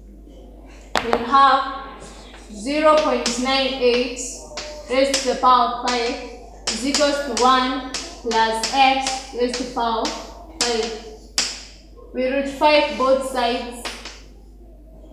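A girl speaks clearly and calmly nearby.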